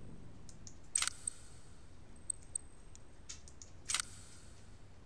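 Short sharp menu clicks sound a few times.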